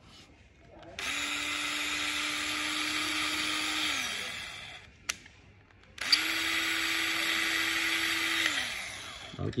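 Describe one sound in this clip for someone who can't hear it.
An electric drill whirs at high speed, then winds down.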